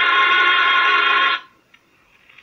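A small radio sounds a loud, buzzing tone that cuts off abruptly.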